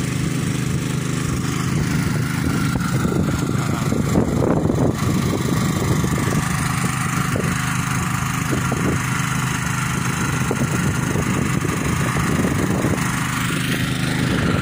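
A small petrol engine drones steadily nearby.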